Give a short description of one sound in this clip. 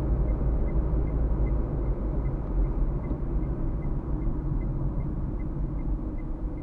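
A car's engine and tyres rumble steadily on a road.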